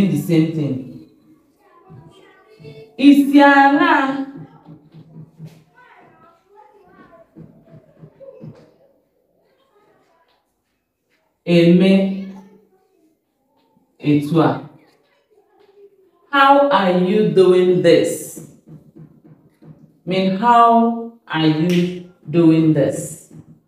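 A woman speaks clearly and calmly, close by, in pauses.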